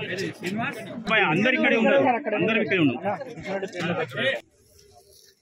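Several men talk at once nearby.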